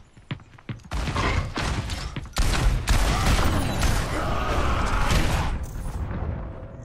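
Guns fire in rapid bursts with loud blasts.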